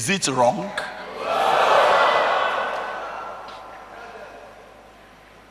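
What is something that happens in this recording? An audience laughs and murmurs.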